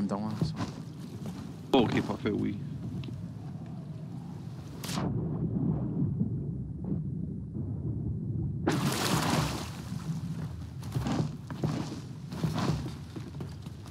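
Ocean waves wash and splash nearby.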